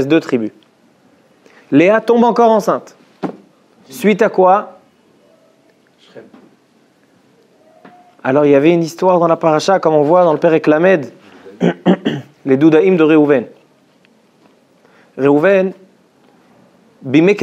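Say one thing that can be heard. A young man speaks calmly into a close microphone, with pauses.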